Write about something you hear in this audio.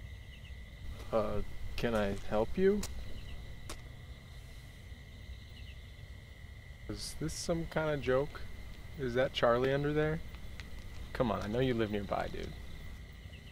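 A young man speaks calmly nearby, with pauses.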